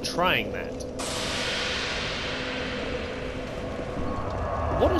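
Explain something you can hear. A magical whoosh swells and fades.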